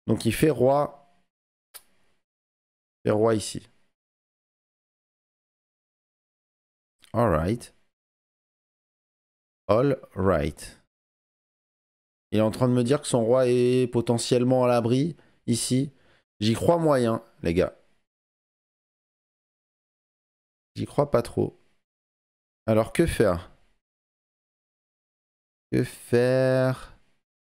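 A young man talks calmly into a close microphone, in short bursts with pauses.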